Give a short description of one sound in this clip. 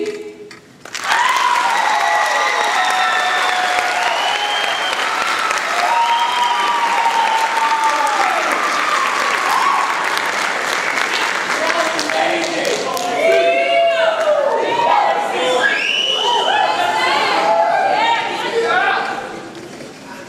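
A large choir of young voices sings together in an echoing hall.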